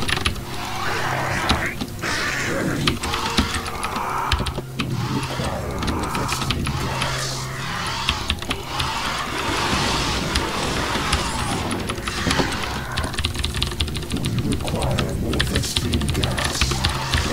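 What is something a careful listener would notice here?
A computer mouse clicks rapidly.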